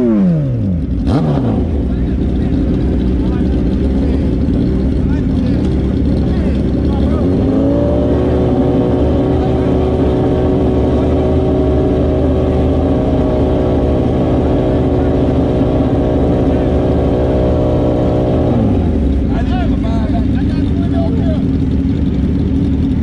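A motorcycle engine idles loudly close by.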